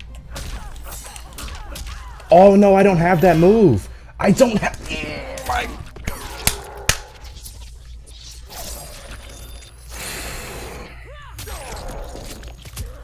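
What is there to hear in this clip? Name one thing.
Punches and blows thud in a video game fight.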